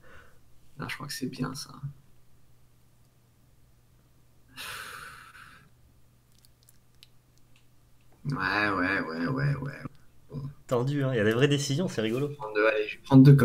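Young men talk and laugh with animation through microphones.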